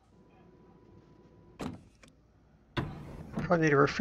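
A heavy sliding door whooshes open.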